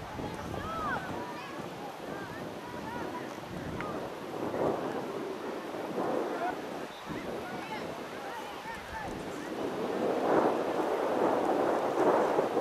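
Young players call and shout to each other across an open outdoor field.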